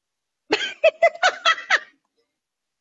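A middle-aged woman laughs loudly over an online call.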